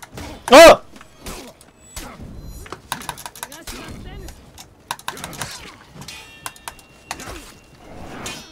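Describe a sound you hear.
Steel swords clash and clang.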